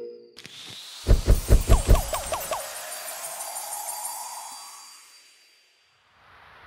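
A bright, triumphant game jingle rings out and fades.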